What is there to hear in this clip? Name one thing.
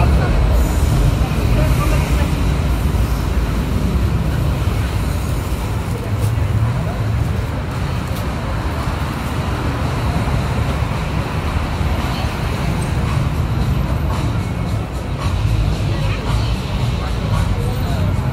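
Traffic rumbles steadily nearby outdoors.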